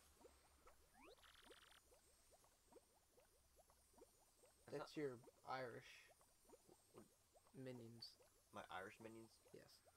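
Quick, high chirping blips patter rapidly.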